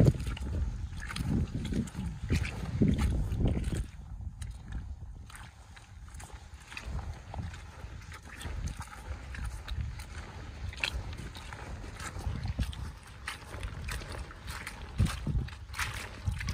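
Boots squelch and crunch on wet, muddy ground, step after step.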